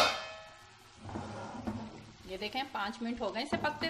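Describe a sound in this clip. A spatula scrapes and stirs in a metal pan.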